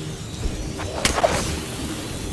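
A crossbow fires a bolt with a sharp snap.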